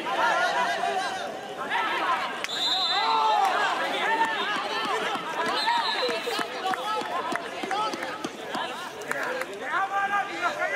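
Players shout and call out across an outdoor field.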